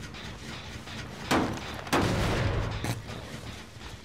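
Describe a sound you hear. A metal engine is struck with loud, clattering bangs.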